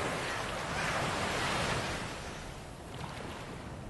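Ocean waves roll and wash heavily.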